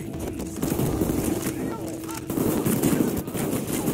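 Banknotes rustle as they are gathered up.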